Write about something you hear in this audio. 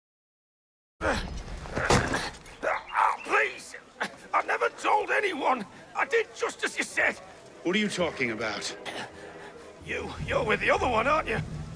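A young man pleads nervously, close by.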